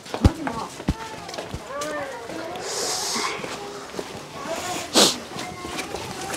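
Footsteps tap on a hard path outdoors.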